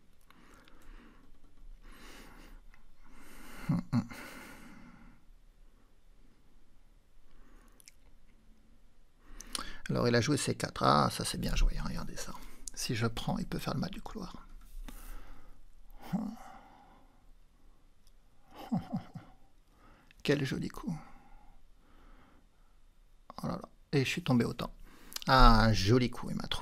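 A man talks calmly and thoughtfully close to a microphone.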